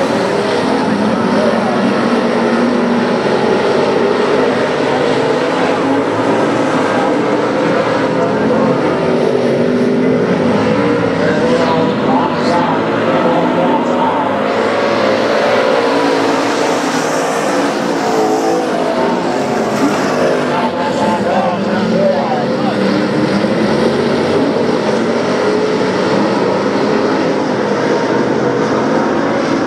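Several stock cars race at full throttle around a dirt oval, their engines roaring.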